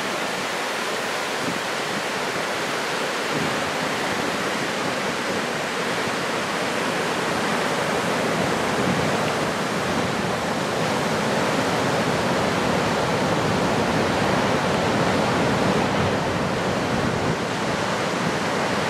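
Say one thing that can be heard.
Ocean waves roar and break steadily.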